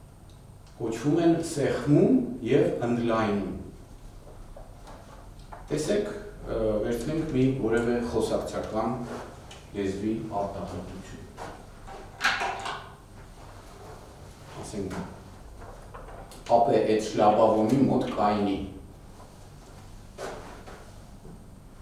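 A middle-aged man speaks calmly, heard through a microphone.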